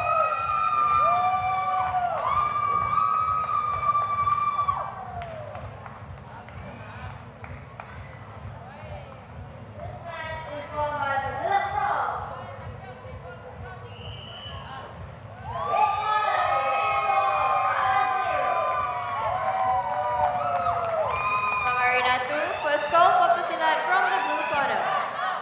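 A crowd cheers and calls out in a large echoing hall.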